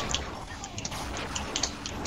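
An energy weapon fires with a buzzing hiss.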